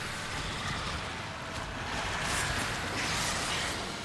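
A sword clashes and slashes with a bright metallic ring.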